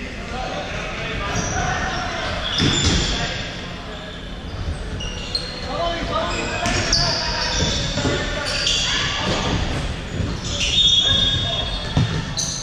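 Men shout to each other across an echoing hall.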